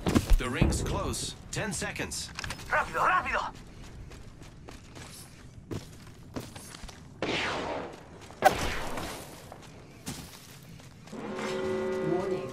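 Footsteps thud quickly on dirt and grass.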